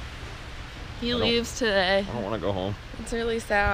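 A young woman talks cheerfully close to the microphone.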